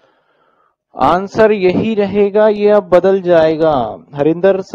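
A man speaks clearly and steadily into a close microphone.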